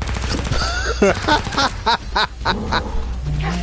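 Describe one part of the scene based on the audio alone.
Gunshots fire in a quick burst.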